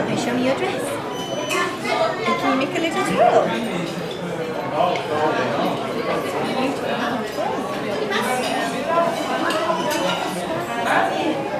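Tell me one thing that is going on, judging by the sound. A young woman talks warmly and animatedly up close.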